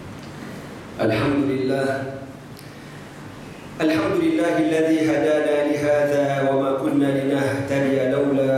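A man chants loudly through a microphone in an echoing hall.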